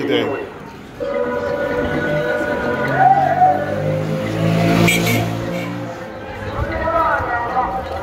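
A motor tricycle engine rumbles nearby.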